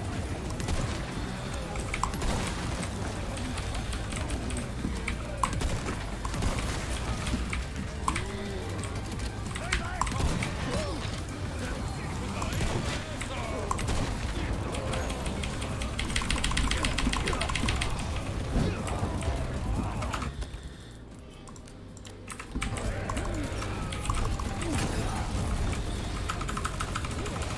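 Gunshots bang out in quick bursts.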